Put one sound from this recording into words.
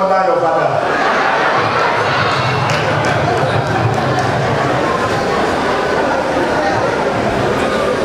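A crowd murmurs and calls out in response.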